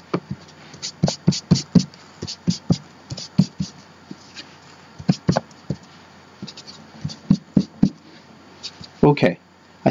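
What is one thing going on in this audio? Paper rustles under hands.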